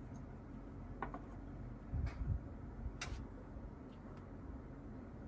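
Small plastic toy pieces click and tap as they are handled.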